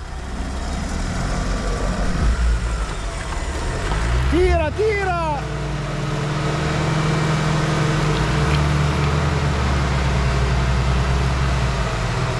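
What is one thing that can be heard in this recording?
Rocks crunch and grind under tyres.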